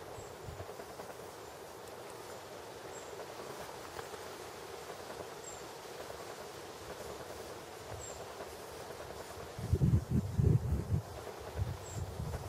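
A beaver chews on willow leaves in the water.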